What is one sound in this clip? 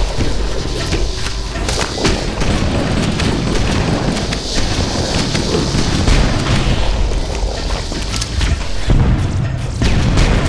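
Gunshots blast in quick bursts.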